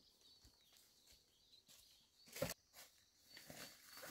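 Dry leaves rustle underfoot.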